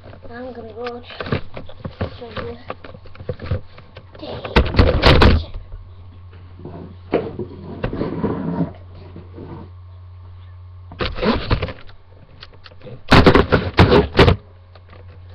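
Cloth rubs and scrapes right against the microphone.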